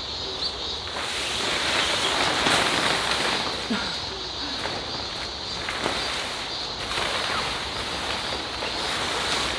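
A tarp rustles and flaps as it is pulled over a tent.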